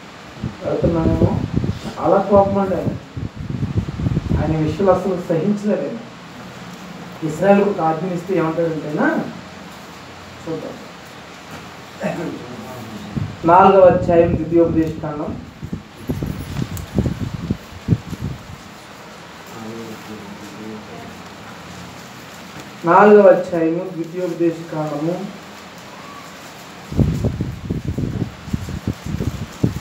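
A man speaks into a microphone in bursts, reading out with pauses.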